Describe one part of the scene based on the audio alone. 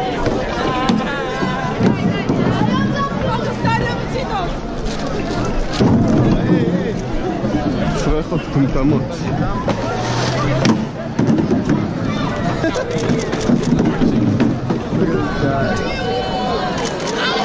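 A large crowd of men shouts and chatters loudly outdoors.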